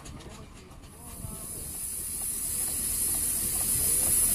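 A small steam engine hisses loudly.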